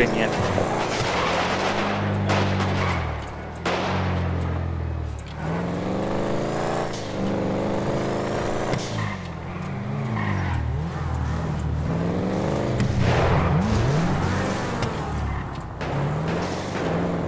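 A car engine revs hard, rising and falling as it shifts gears.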